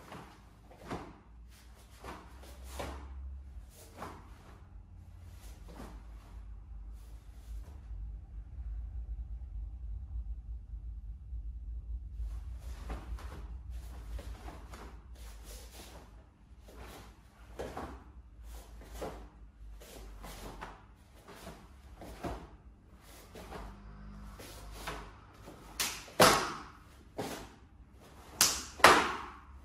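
Bare feet thump and slide on a mat.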